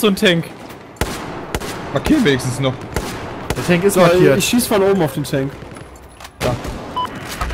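A rifle fires sharp single shots.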